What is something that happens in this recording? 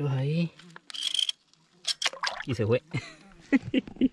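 Water splashes as a fish is released.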